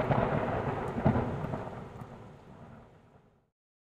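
Thunder cracks and rumbles, slowly fading away.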